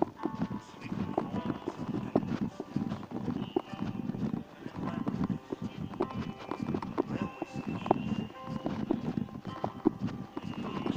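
Footsteps tap steadily on an asphalt road outdoors.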